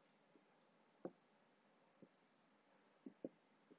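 A marker taps on a whiteboard.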